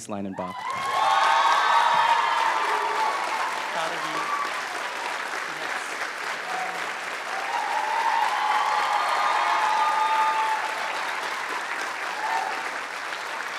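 Audience members cheer and whoop.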